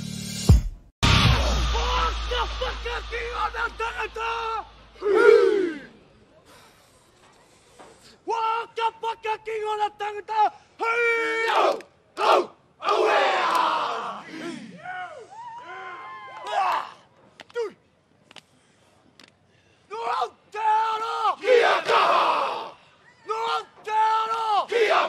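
A group of men chant and shout loudly in unison outdoors.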